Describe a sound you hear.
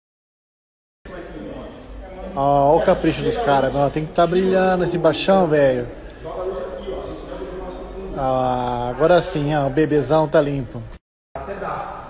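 A young man sings loudly close by.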